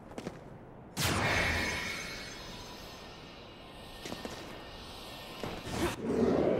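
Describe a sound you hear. A magical beam bursts on with a loud whoosh and then hums.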